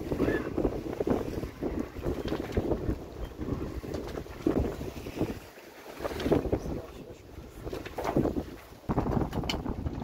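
A man speaks close by, outdoors in wind.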